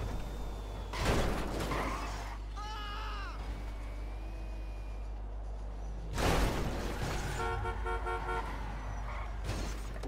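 A sports car engine roars as the car speeds along.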